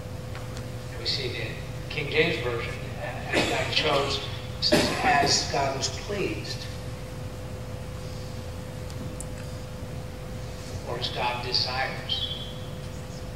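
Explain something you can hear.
A man speaks in short bursts, close by.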